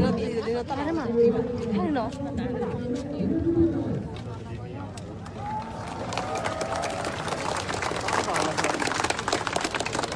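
A crowd of people talks and calls out outdoors.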